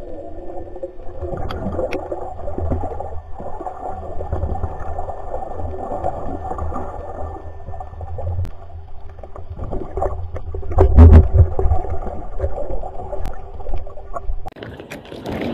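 Water rushes and bubbles steadily around an underwater microphone.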